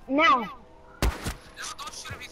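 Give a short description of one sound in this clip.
A handgun fires a single shot.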